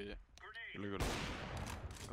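A sniper rifle fires a single loud shot.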